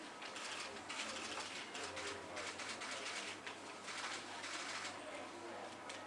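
Papers rustle.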